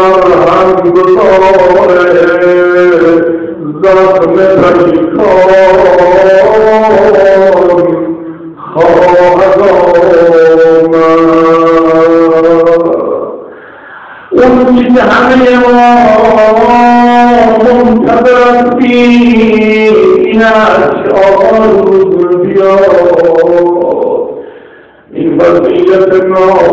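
A man chants in a long, melodic voice.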